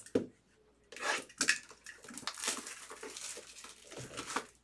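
Plastic wrapping crinkles as it is torn open.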